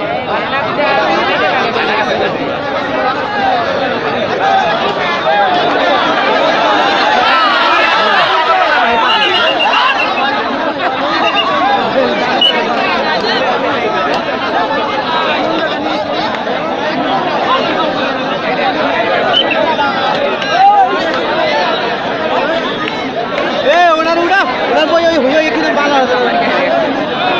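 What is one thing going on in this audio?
A large outdoor crowd chatters and shouts throughout.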